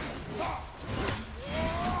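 An axe swings through the air with a crackling, magical whoosh.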